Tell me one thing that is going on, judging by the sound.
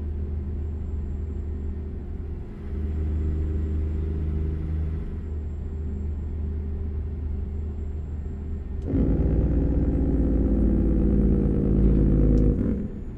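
A truck engine hums steadily, growing louder and deeper partway through.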